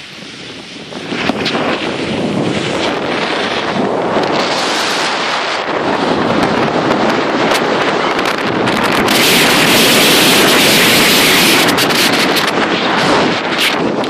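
A snowboard scrapes over snow.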